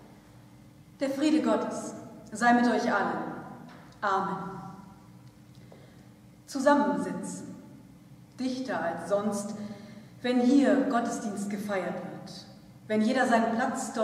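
A woman speaks clearly and calmly nearby, her voice echoing in a large hall.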